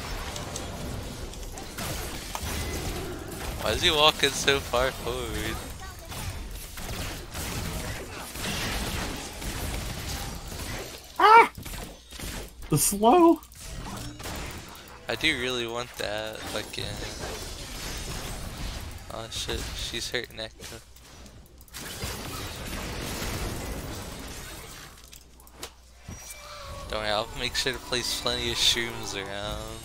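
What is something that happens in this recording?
Magic blasts whoosh and crackle in a fast fight.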